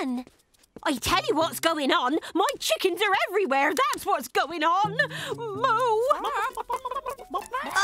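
A young woman speaks anxiously and excitedly, close by.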